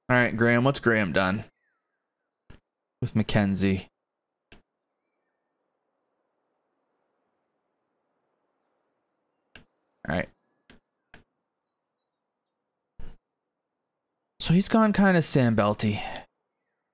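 A middle-aged man talks casually into a close microphone, in short bursts.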